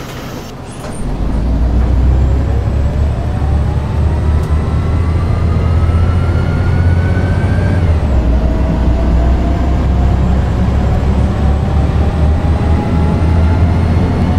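A bus engine roars and rises in pitch as the bus pulls away and speeds up.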